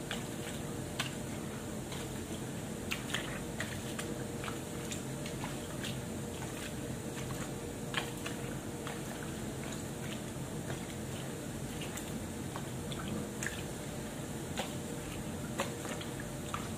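Water sloshes and splashes as clothes are scrubbed by hand.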